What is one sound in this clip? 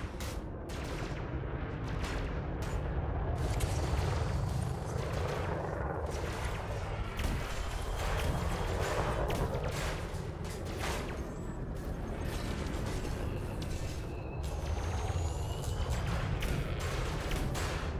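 Laser cannons fire in bursts.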